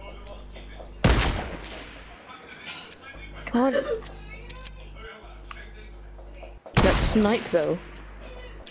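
A rifle fires loud, sharp shots that ring out and fade.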